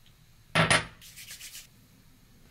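A woman rubs her palms together.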